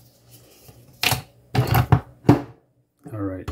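A capsule lid clicks shut on a coffee machine.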